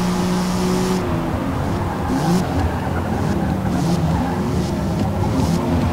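Tyres squeal as a car brakes into a corner.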